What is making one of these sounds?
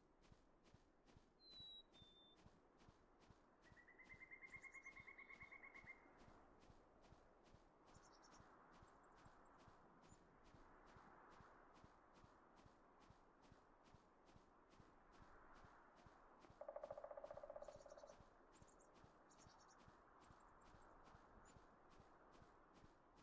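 Small footsteps patter in a quick, steady rhythm.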